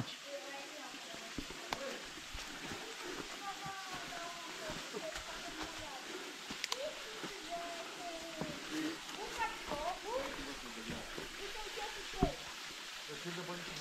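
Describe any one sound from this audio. Footsteps crunch on leaves and twigs.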